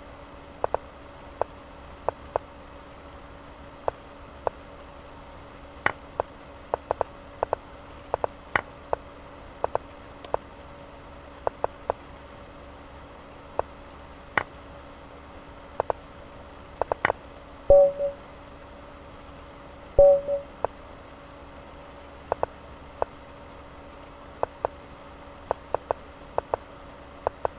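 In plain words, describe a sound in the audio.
Sharp clicks of chess pieces being placed sound quickly and irregularly.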